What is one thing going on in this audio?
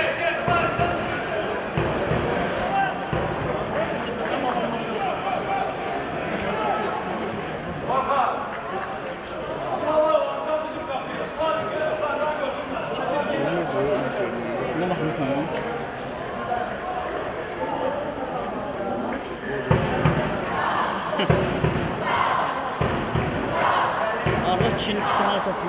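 Male players shout to each other across an open pitch, heard from a distance.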